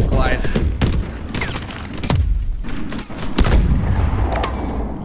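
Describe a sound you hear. Gunshots crack sharply several times.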